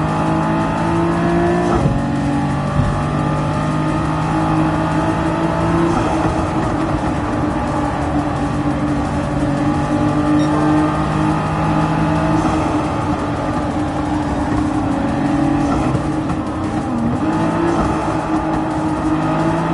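A car engine roars at high revs, shifting gears as it speeds along.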